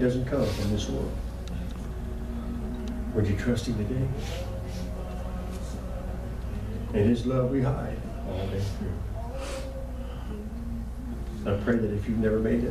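An older man prays aloud into a microphone in short, emotional bursts, with pauses between phrases.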